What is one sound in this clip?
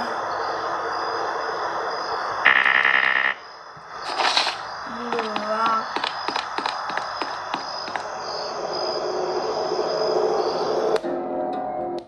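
Eerie game sounds play from a tablet.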